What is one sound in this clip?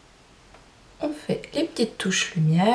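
A young woman speaks close to a microphone, calmly and with animation.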